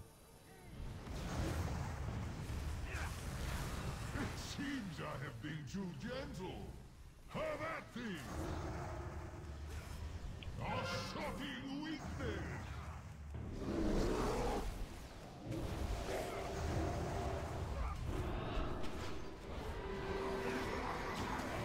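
A young man talks into a microphone with animation, close up.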